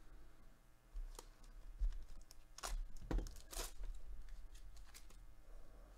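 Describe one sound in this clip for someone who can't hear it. A foil wrapper crinkles as it is torn open.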